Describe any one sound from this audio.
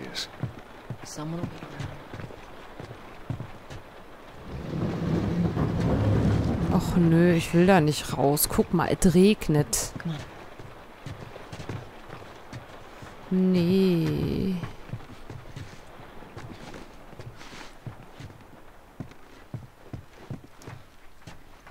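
Footsteps thud softly on a wooden floor.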